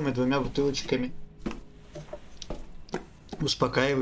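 Hands grip and climb a creaking wooden ladder.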